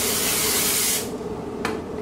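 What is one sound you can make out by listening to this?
An aerosol can sprays with a hiss.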